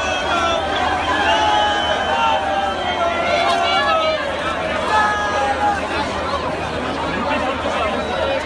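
Loud live music plays through a big sound system outdoors.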